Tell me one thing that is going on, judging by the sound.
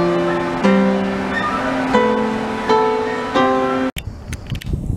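A piano plays a lively melody up close.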